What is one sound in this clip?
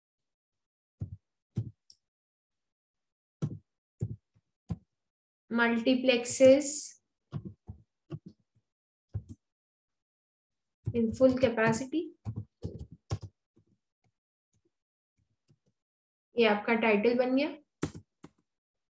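Computer keys click as someone types.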